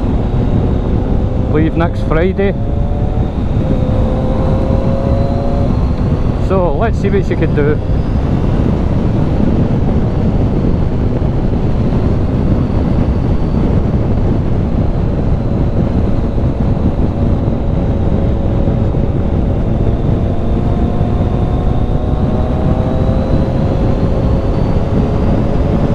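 A motorcycle engine hums steadily and changes pitch as it speeds up and slows down.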